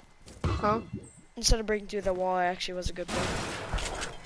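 Gunshots crack and strike a wall nearby.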